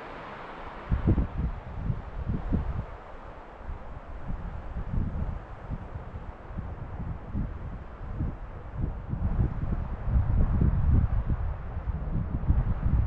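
Wind gusts outdoors and rumbles low against the microphone.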